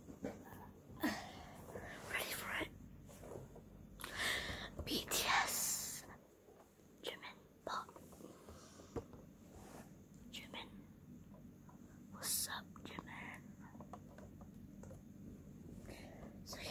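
A young boy whispers close to the microphone.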